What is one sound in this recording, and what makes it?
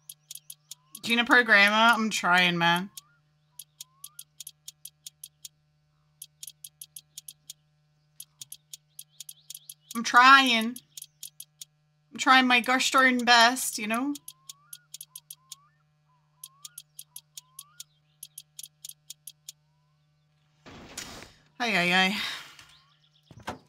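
A young woman talks with animation into a nearby microphone.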